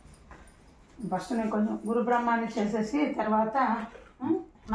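A woman sings nearby.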